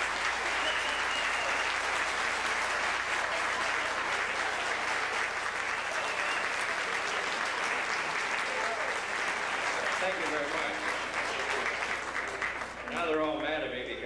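A jazz band plays lively music with a trumpet, loud and close.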